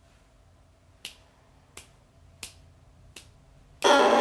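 A young woman taps short sharp clicks with her tongue on a reed.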